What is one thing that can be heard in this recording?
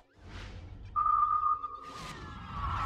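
A game chime rings out.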